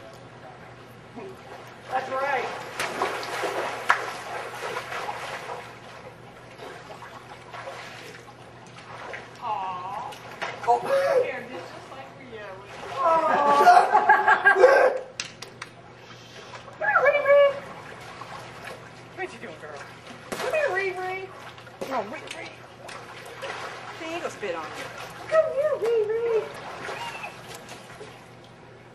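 Water splashes as people move about in a pool.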